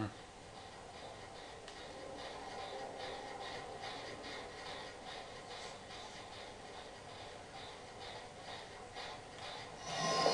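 Footsteps thud along a hard floor at a steady, quick pace.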